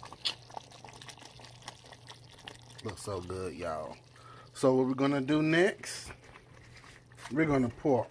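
Thick sauce bubbles softly in a pot.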